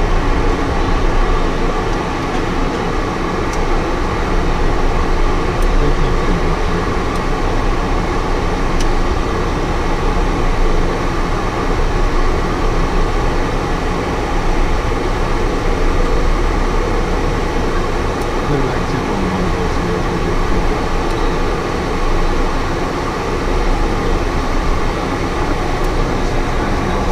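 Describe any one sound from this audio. An aircraft engine drones steadily and loudly.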